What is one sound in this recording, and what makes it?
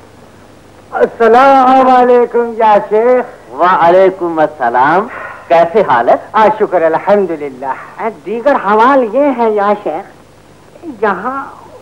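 A man sings loudly with a wavering voice.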